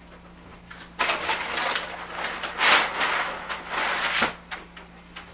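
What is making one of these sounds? A large sheet of paper rustles and crinkles as it is handled.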